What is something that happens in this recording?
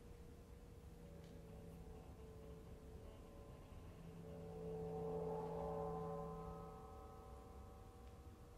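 A small ensemble plays long held notes in a large echoing hall, swelling louder and then easing off.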